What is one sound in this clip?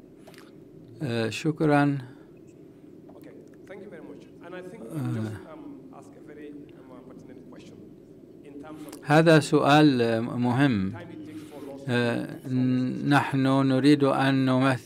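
A young man speaks calmly into a microphone, heard through a loudspeaker in a large room.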